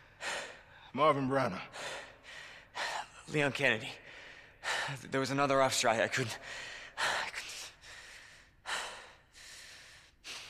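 A young man speaks in a shaken, halting voice.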